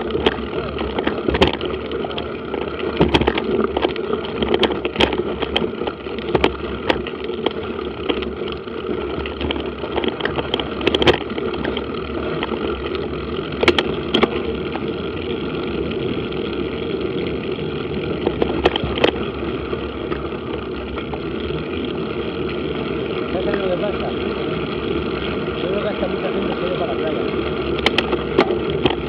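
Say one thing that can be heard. Tyres crunch and rattle over a dirt track.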